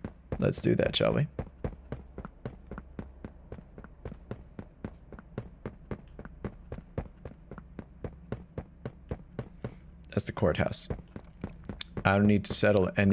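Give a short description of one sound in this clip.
Footsteps thud at a steady walking pace.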